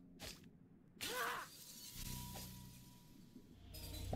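A crystal shatters with a bright crash.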